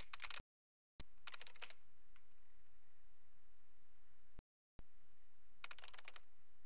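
A computer terminal clatters with quick bursts of key clicks.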